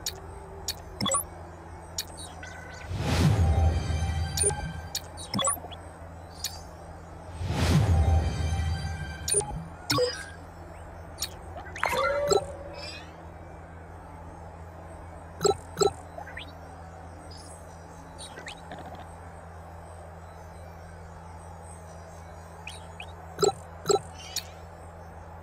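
Game menu sounds click and chime as options are selected.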